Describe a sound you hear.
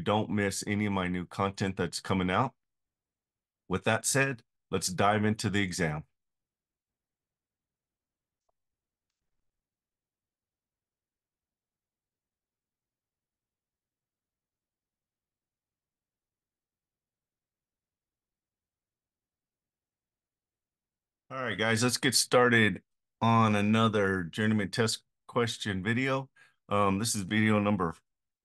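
A middle-aged man speaks calmly and closely through a microphone, as if on an online call.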